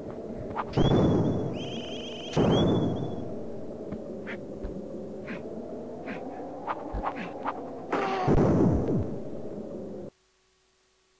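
Electronic game music plays steadily, then stops abruptly.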